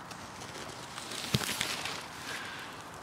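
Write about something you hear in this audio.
Leaves rustle as a hand brushes through them.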